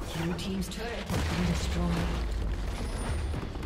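A tower collapses with a deep rumbling crash.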